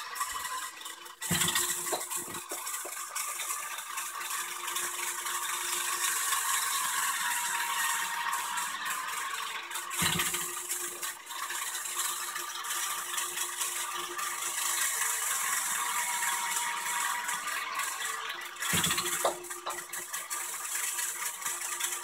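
A small toy motor whirs steadily.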